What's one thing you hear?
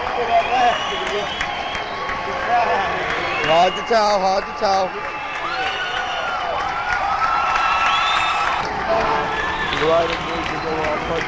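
A man sings loudly into a microphone through a loudspeaker system.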